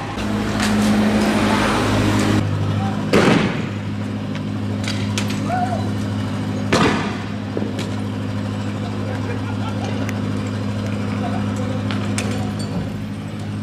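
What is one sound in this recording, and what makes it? An armoured vehicle's engine rumbles steadily close by.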